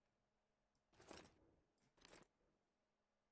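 Soft menu clicks sound a few times.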